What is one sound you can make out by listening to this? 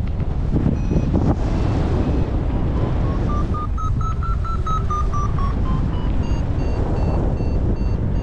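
An electronic flight instrument beeps in quick, evenly spaced tones that climb and fall in pitch.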